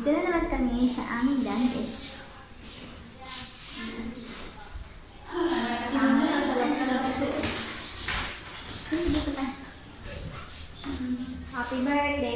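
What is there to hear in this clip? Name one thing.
A woman talks with animation close to a microphone, her voice slightly echoing off hard walls.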